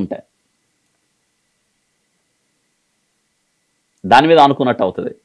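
A middle-aged man speaks calmly and closely into a microphone, with long pauses.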